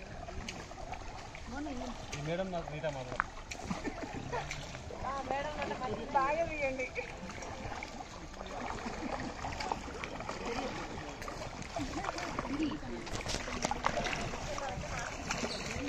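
Paddles splash and dip into water.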